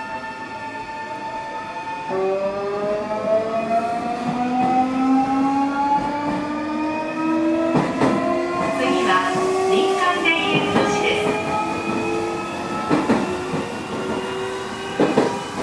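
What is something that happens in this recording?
An electric train's motor whines, rising steadily in pitch as the train pulls away.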